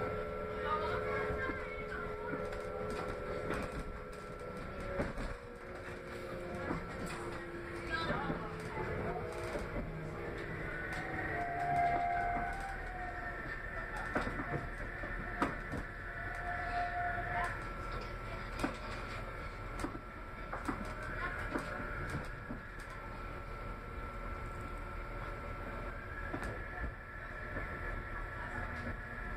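A train rumbles and hums steadily as it rolls along.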